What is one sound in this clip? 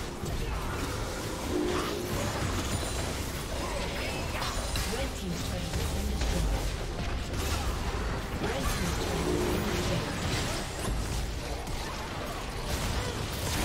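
Game spells and attacks crackle and boom in a busy battle.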